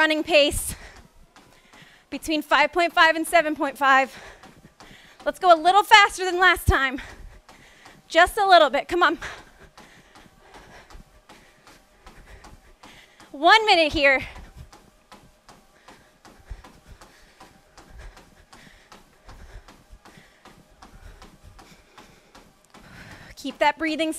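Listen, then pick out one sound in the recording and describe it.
Running footsteps thud steadily on a treadmill belt.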